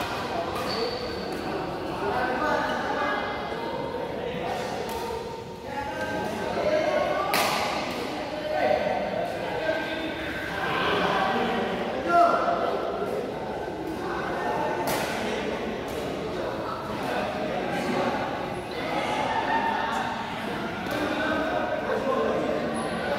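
Voices of young men chatter and call out in a large echoing hall.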